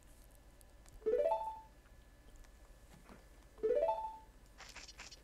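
A quick rising run of chiming notes plays twice.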